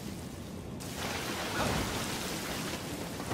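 A fiery blast bursts with a loud roar.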